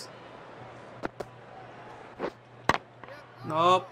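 A bat strikes a cricket ball.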